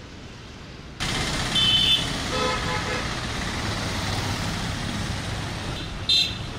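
Motorbike engines buzz past close by.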